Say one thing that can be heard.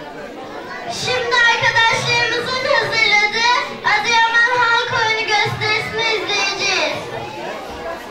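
A young girl recites loudly through a microphone in an echoing hall.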